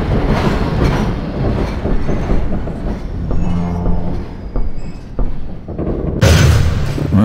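A subway train rattles and rumbles along the tracks.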